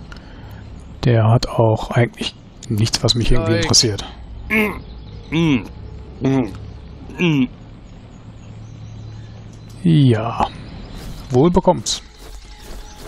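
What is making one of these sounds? A man speaks gruffly and with animation, close by.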